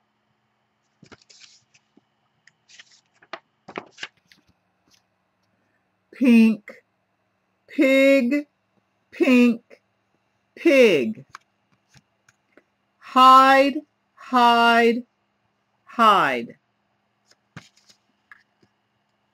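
Paper pages rustle as a book is turned.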